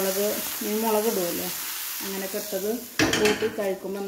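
A metal lid clanks as it is lifted off a pot.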